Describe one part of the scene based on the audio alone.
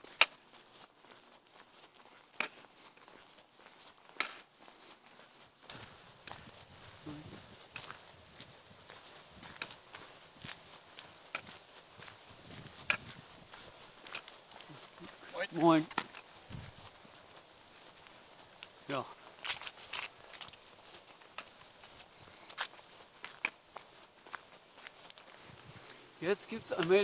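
Footsteps crunch steadily on a path outdoors.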